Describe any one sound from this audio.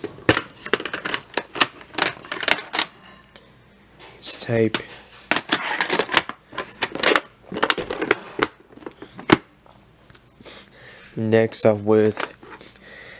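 Plastic cassette cases click and rattle as they are handled.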